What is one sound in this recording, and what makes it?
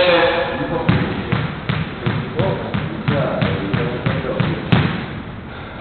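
A squash ball bounces repeatedly on a wooden floor.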